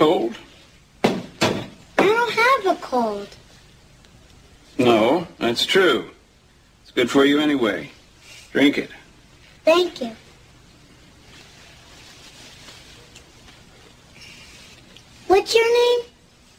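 A young boy speaks in a small, quiet voice.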